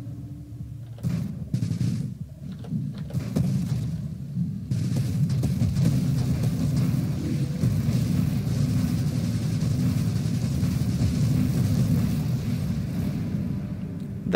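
Rapid laser blasts and explosions crackle in a video game.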